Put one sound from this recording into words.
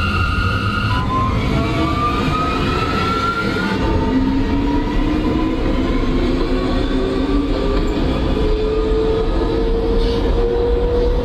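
A subway train's electric motors whine, rising steadily in pitch as it speeds up.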